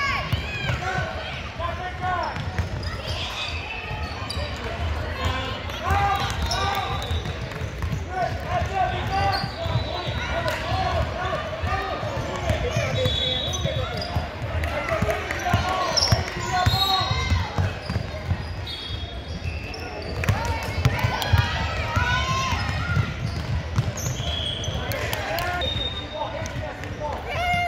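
Spectators shout and cheer throughout, echoing in a large hall.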